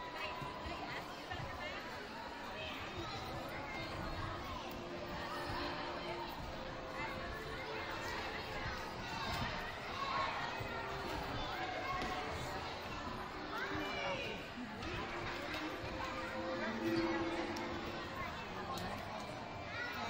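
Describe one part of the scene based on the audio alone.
A crowd of children and adults chatters and calls out in a large echoing gym.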